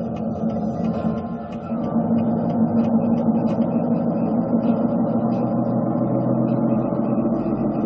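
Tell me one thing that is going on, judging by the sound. A truck engine drones steadily through loudspeakers.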